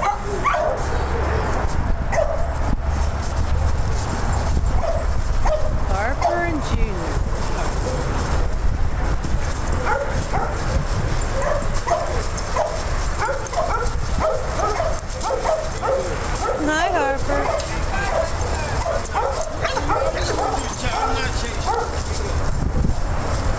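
Several dogs growl and yip as they play-fight.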